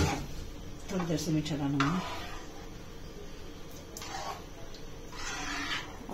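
A metal spoon scrapes and stirs inside a pot.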